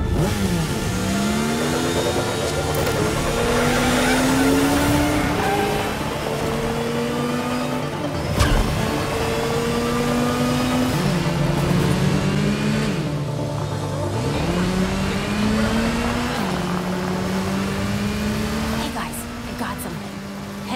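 A motorcycle engine roars, revving up and down.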